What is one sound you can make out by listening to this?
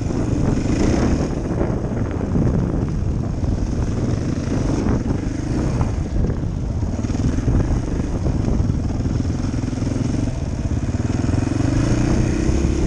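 Tyres crunch over a dirt trail.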